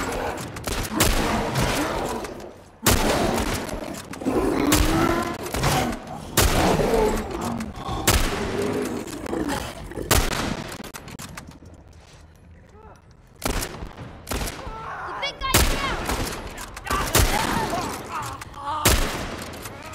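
Rifle shots ring out loudly, one after another, with a booming echo.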